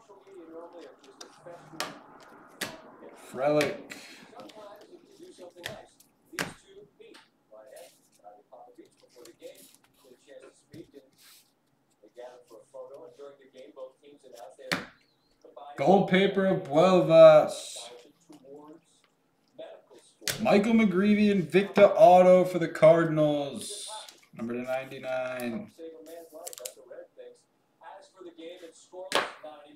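Trading cards rustle and click as they are flipped through by hand.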